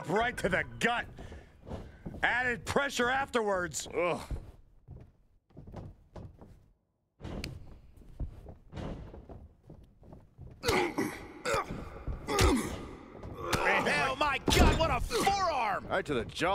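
Heavy blows and body slams thud.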